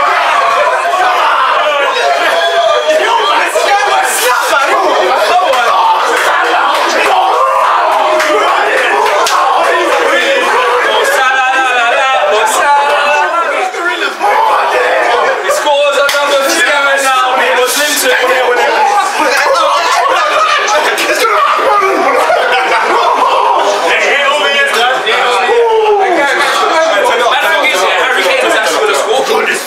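A group of young men talk, shout and laugh loudly close by.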